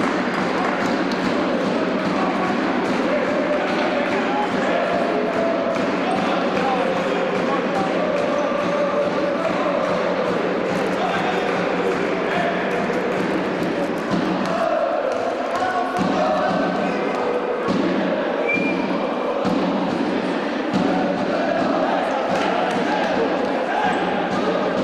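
A crowd of spectators murmurs and chatters in a large echoing hall.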